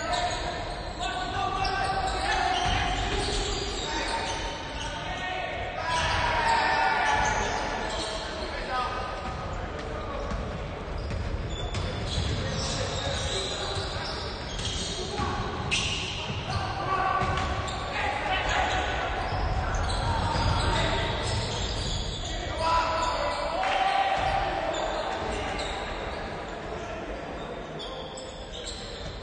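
Young men shout to each other across an echoing hall.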